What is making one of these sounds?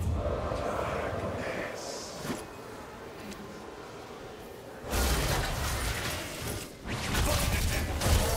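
Magic blasts and weapon hits crash in a fast fight.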